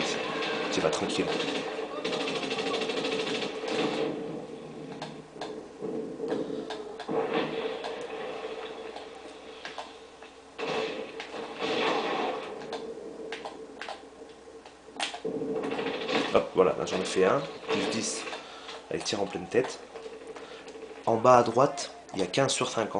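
Gunfire rattles in bursts from a video game.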